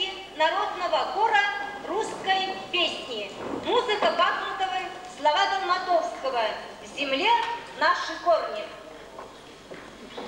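A women's choir sings loudly in a large hall.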